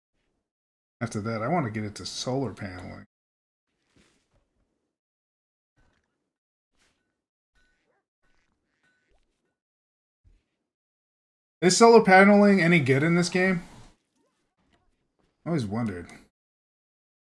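A man talks calmly in short bursts, close to a microphone.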